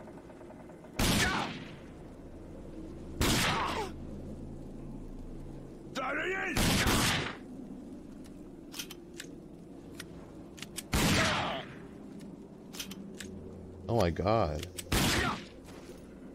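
A pistol fires single loud shots, one every few seconds.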